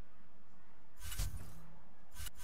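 A soft electronic whoosh plays as a menu switches.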